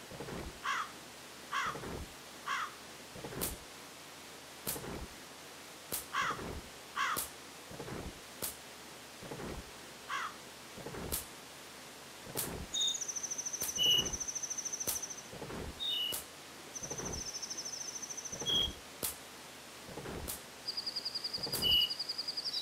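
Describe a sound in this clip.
Short video game sound effects thump and chirp again and again.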